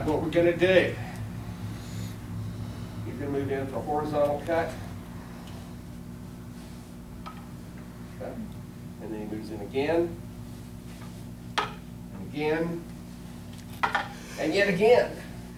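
An elderly man gives instructions in short spoken bursts.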